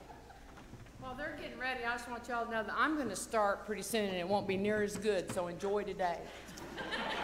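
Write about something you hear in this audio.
An elderly woman speaks with animation into a microphone.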